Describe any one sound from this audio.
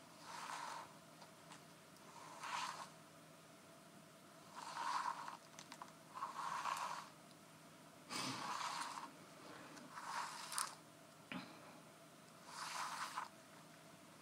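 A measuring tape rustles and slides as it is pulled out and rolled back.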